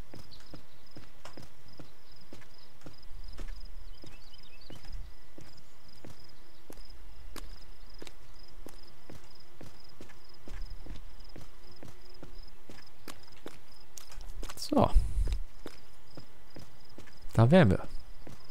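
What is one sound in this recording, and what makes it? Footsteps crunch steadily over stony ground.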